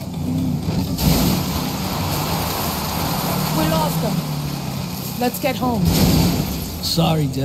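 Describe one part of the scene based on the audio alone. A car bumps and rattles over rough ground.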